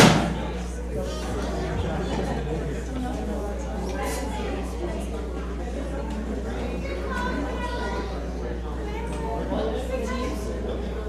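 Several adults chat quietly at a distance in an echoing hall.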